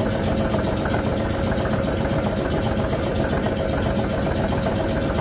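A power hammer's motor runs with a fast, steady thumping.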